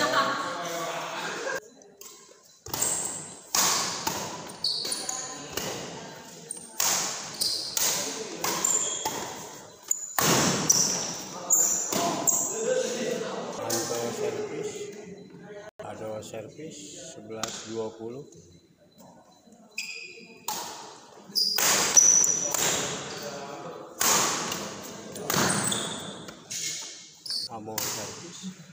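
Shoes squeak and thump on a wooden floor.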